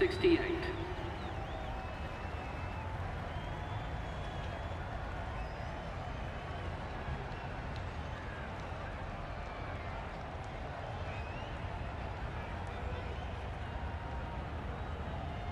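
A large stadium crowd murmurs steadily in the background.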